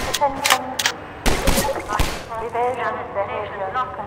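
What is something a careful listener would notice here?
A pistol is reloaded with a metallic click.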